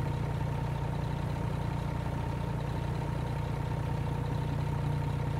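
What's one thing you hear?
A heavy truck engine idles with a steady low rumble.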